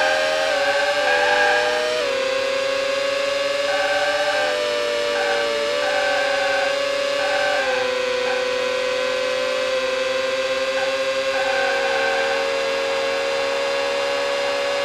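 A racing car engine whines at high revs, shifting gears as it speeds up.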